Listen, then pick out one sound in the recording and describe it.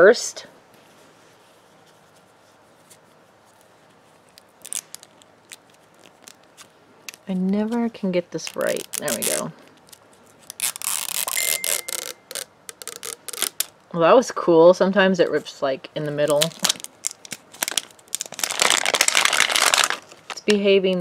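A hard plastic ball clicks and taps as hands turn it.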